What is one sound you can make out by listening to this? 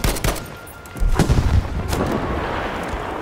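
A large explosion booms close by.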